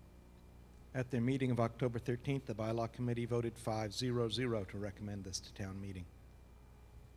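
A middle-aged man speaks into a microphone in a large echoing hall.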